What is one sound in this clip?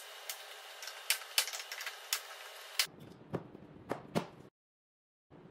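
Plastic panels click and rattle as they are handled.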